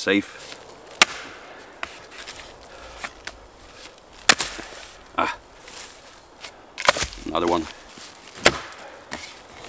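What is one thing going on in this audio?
An axe chops into wood with sharp knocks.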